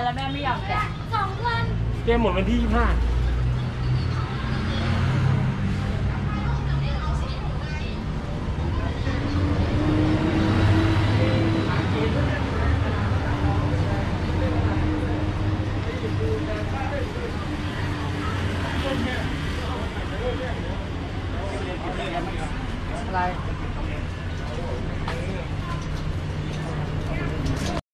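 Street traffic hums steadily in the background.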